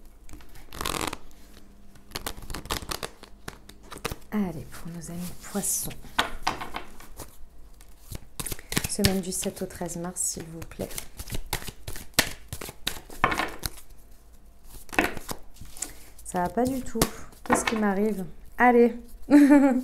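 Playing cards shuffle and riffle softly between hands.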